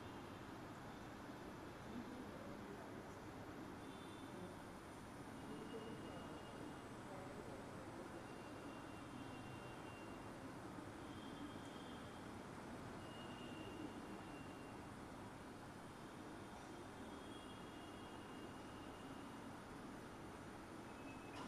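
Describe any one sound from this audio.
A large congregation murmurs quietly.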